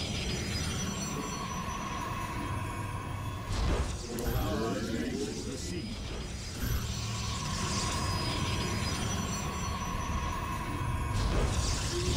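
A steady electronic hum drones as new units warp in.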